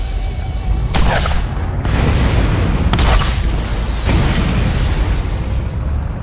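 Explosions boom loudly one after another.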